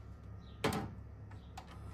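A plastic remote control clacks down onto a hard surface.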